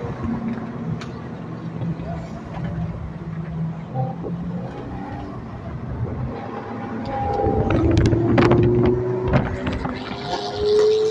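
A car's engine hums steadily from inside the cabin.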